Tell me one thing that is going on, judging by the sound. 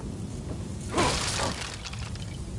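A wooden crate smashes with a loud crack.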